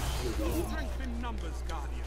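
Gunfire cracks in quick bursts.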